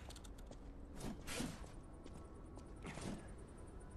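A sword swishes through the air and strikes with a metallic clang.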